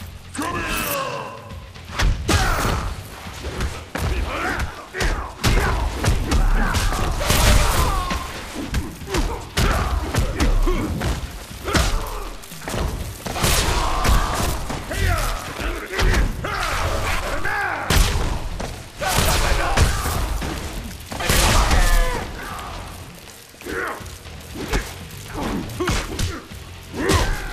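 Punches and kicks land with heavy, rapid thuds.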